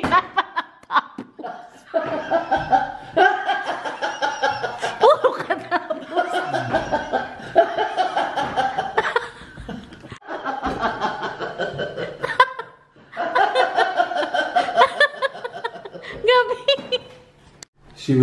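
A middle-aged man laughs heartily.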